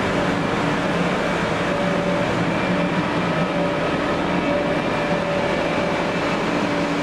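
Cars drive along a city street in the distance.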